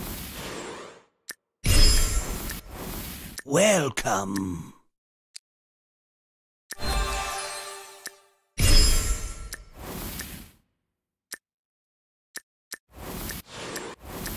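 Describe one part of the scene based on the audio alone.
Short electronic chimes and whooshes play in bursts.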